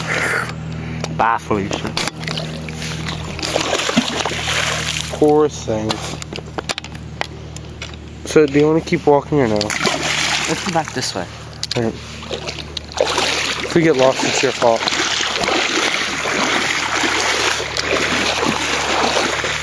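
Water flows and splashes steadily over stones in a shallow stream.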